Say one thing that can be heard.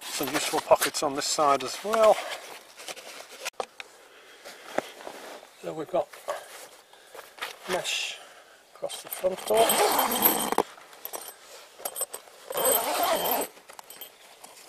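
Tent fabric rustles and flaps as it is handled.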